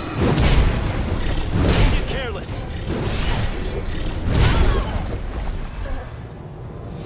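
Heavy blows strike and crash loudly.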